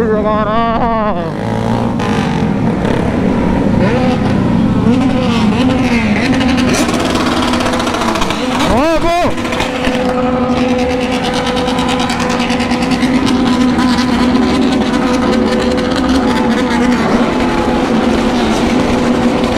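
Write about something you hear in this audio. Other motorcycle engines rev and rumble nearby.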